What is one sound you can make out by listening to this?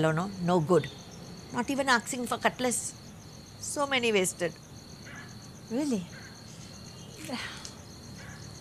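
An older woman speaks calmly nearby.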